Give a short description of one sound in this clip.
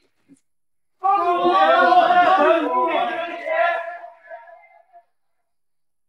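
A group of men shout a greeting loudly in unison.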